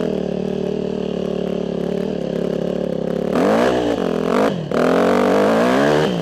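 A dirt bike engine drones steadily, then revs up and down sharply.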